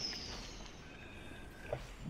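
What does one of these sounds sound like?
A rocket boost whooshes from behind a car.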